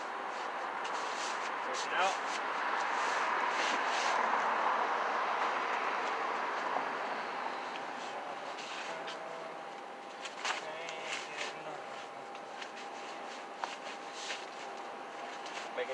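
Bare feet shuffle and thump on a soft mat close by.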